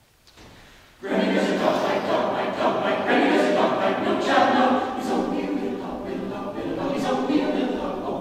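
A choir of men and women sings together in a large, echoing hall.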